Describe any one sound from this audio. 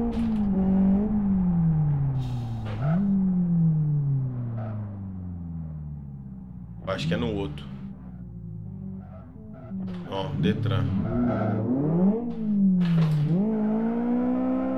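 A car engine revs up and down through gear changes.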